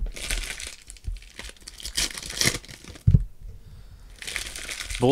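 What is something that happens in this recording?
Foil packs crinkle and rustle as hands tear them open.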